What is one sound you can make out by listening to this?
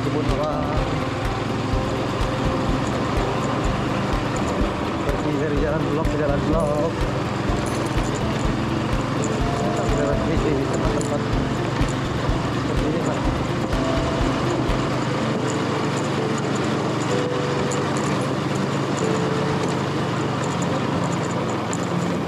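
Tyres rumble over a bumpy dirt track.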